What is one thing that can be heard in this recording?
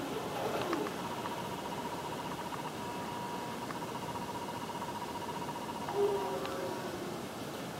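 A steady buzzing electronic tone plays through a television speaker.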